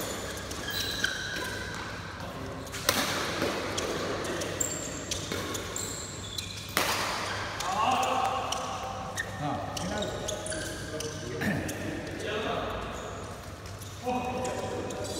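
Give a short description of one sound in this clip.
Shuttlecocks are struck with rackets with sharp pops.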